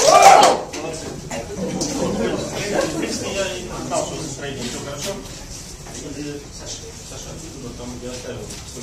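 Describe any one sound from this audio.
A man speaks calmly to a small audience.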